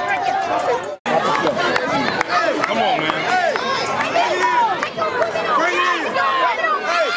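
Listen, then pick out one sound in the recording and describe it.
A crowd of children and adults cheers and chatters nearby.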